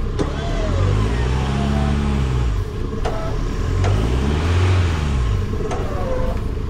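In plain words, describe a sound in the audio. A truck engine revs up hard and falls back, twice.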